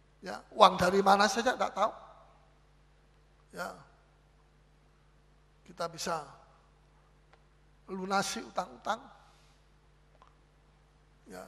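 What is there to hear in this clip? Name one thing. A middle-aged man preaches with animation through a microphone, in bursts with pauses.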